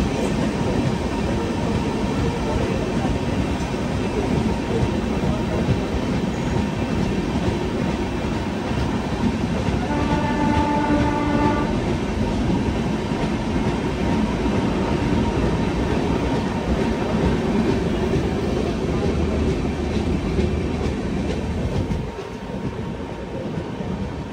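Train wheels clatter rapidly over rail joints.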